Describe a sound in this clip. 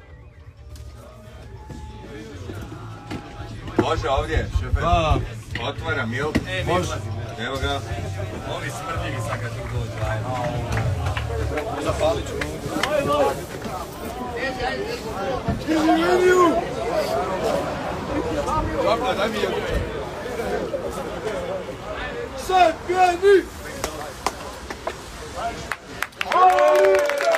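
A large crowd of men chants and sings loudly outdoors.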